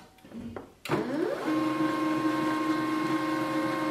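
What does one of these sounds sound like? A printer whirs and hums steadily as it warms up.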